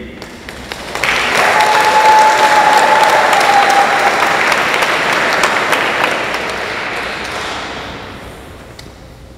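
An audience applauds loudly, then the applause fades.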